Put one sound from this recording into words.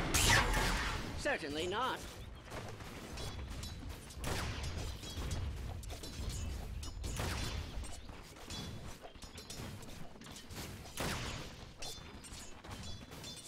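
Magic blasts and weapon strikes crackle and thud in a busy fight.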